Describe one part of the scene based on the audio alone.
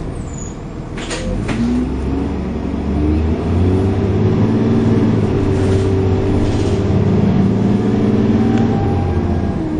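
Loose fittings on a bus rattle and clatter now and then.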